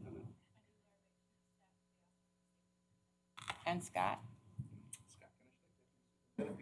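A woman speaks in short bursts through a microphone.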